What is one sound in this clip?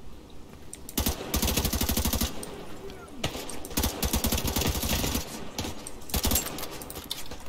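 Rapid bursts of gunfire rattle.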